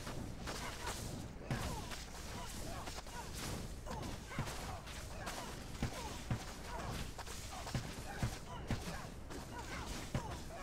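Magic blasts crackle and burst without pause.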